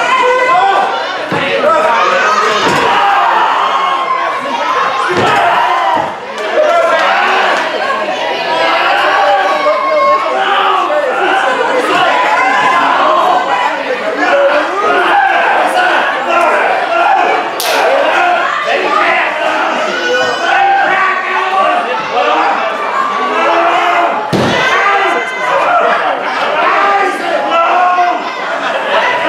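A crowd of spectators chatters and shouts in an echoing hall.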